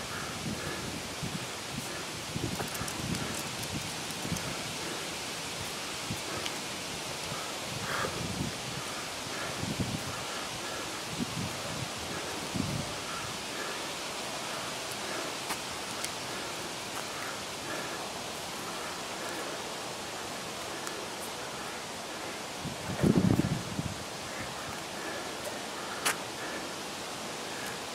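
Footsteps land heavily on paving stones outdoors.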